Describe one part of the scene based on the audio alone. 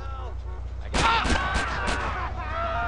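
A shotgun fires several shots in quick succession.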